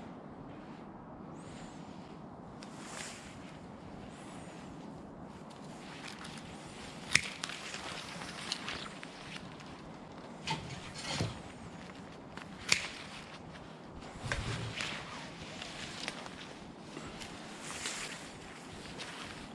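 Bare twigs rustle and scrape against each other.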